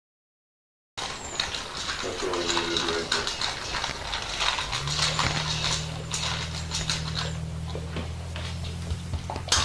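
A dog eats noisily from a metal bowl.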